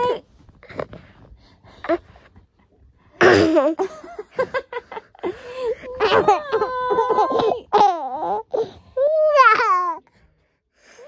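A toddler laughs and squeals playfully up close.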